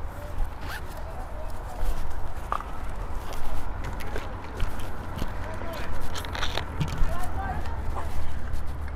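A woman speaks calmly at a distance.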